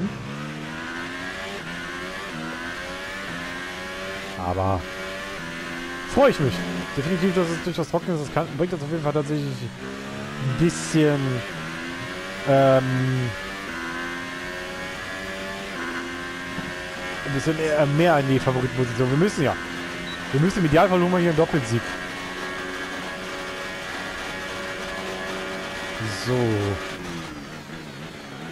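A racing car engine screams steadily, rising and falling in pitch as the car speeds up and slows for corners.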